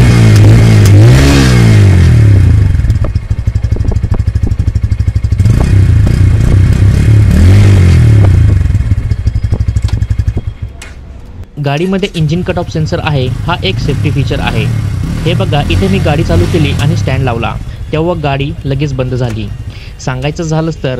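A motorcycle engine rumbles close by and revs up and down repeatedly.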